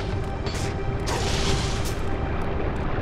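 A blade whooshes through the air.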